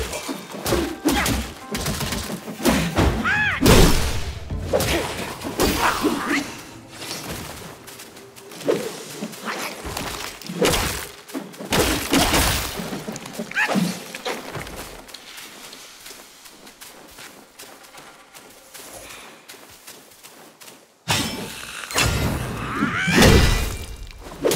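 Staff blows strike with sharp thuds and whooshes.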